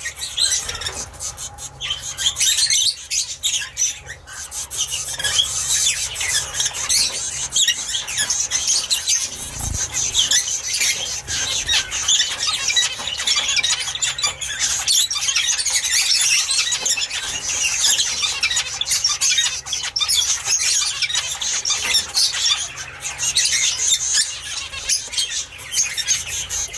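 Young birds chirp and squeak shrilly and without pause inside a nest box.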